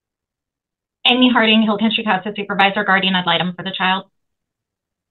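A middle-aged woman speaks calmly and steadily over an online call.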